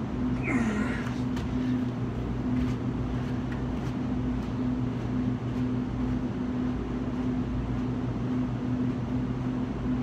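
A man's footsteps slap on concrete and fade into the distance.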